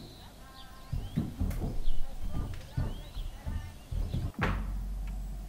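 Footsteps thud heavily on wooden stairs.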